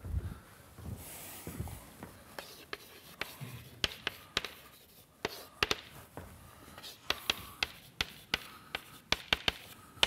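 Chalk taps and scratches on a blackboard.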